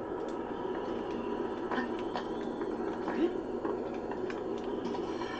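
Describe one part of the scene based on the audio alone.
A young man talks animatedly close to a microphone.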